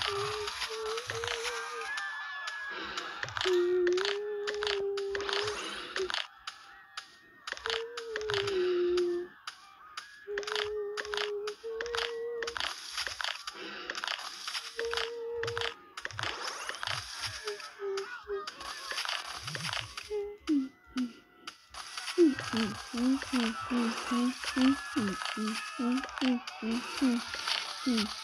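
Mobile game sound effects play through a small phone speaker.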